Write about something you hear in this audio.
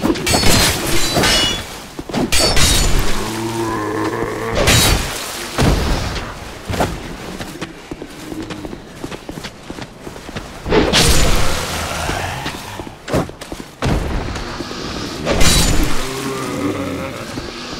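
Swords clang and strike in a fight.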